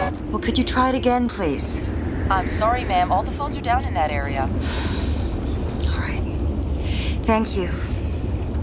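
A young woman talks into a phone, anxious and hushed.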